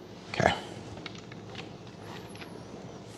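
A drill chuck clicks as it is twisted by hand.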